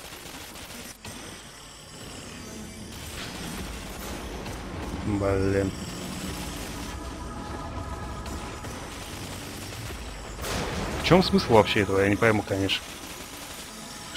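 Crackling energy bolts zap and hiss.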